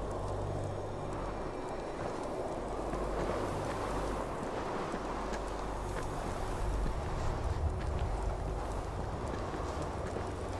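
Wind blows steadily outside a cave.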